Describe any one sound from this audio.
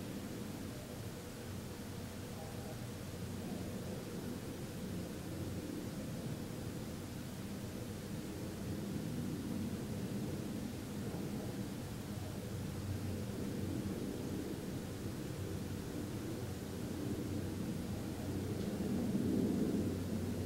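A man hums a low, steady tone close by.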